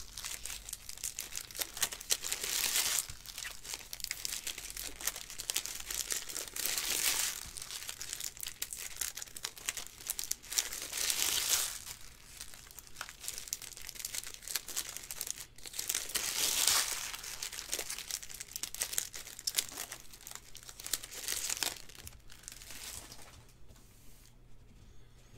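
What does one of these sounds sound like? Trading cards flick and slide against each other as a stack is sorted by hand.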